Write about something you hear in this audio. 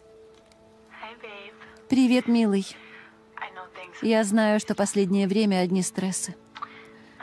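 A young woman speaks with animation through a phone speaker.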